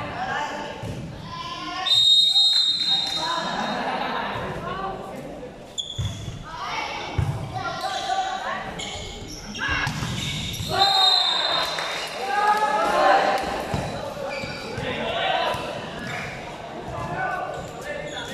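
Young people shout and cheer with animation in a large echoing hall.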